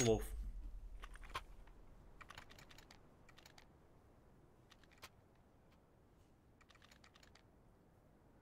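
Footsteps patter softly on hard ground.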